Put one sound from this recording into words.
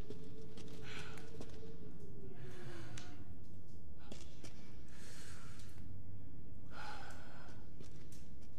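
Footsteps scuff slowly on a stone floor.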